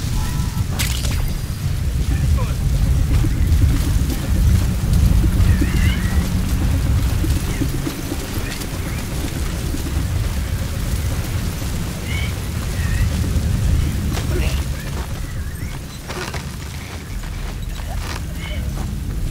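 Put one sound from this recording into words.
Footsteps shuffle over dirt.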